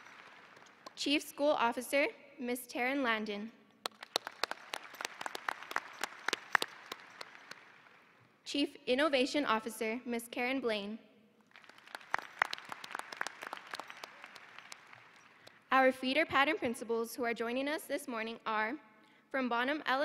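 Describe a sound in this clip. A young woman reads out names into a microphone over loudspeakers in a large echoing hall.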